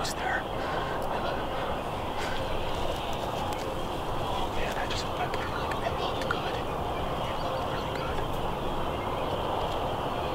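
A young man speaks quietly and excitedly close by.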